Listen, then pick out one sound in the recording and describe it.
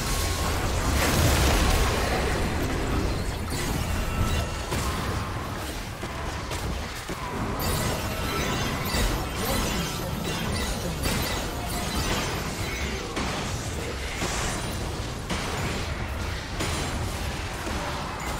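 Spell effects whoosh and crackle in a game fight.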